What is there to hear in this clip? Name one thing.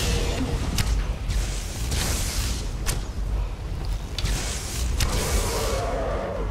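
A magical energy beam crackles and hums steadily.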